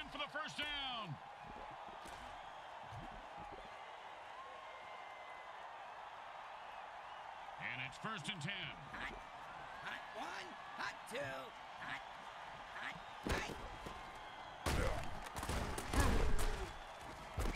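Armoured players crash together in heavy tackles.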